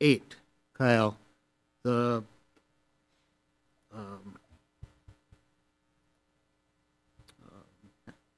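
Men speak in short turns over microphones in a quiet room.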